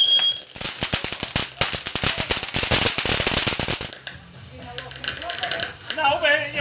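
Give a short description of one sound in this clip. A firework fountain hisses as it sprays sparks.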